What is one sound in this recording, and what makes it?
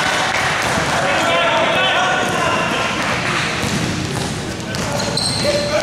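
A basketball bounces on the floor with echoing thuds.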